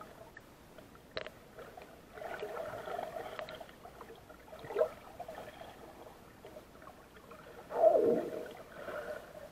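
Water surges and gurgles in muffled swells underwater.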